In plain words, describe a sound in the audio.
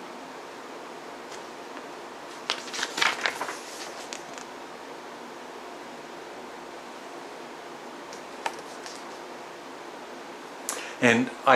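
Paper rustles as a folded booklet is handled.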